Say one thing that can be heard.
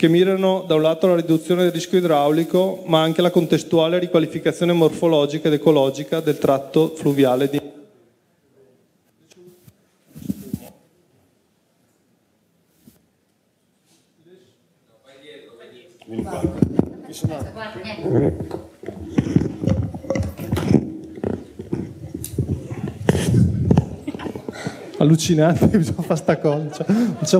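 A man speaks steadily into a microphone in a large room.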